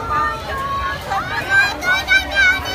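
A young girl squeals and laughs happily close by.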